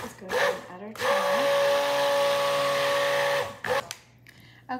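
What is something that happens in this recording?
A stick blender whirs steadily.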